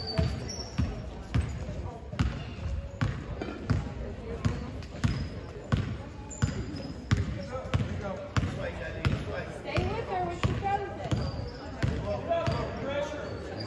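A basketball bounces on a wooden court, echoing through a large hall.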